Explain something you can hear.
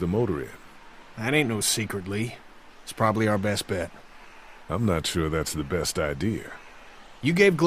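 A middle-aged man speaks with a drawl.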